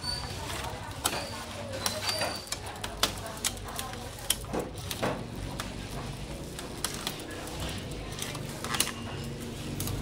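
A bicycle wheel spins with a rapid ticking of its freewheel.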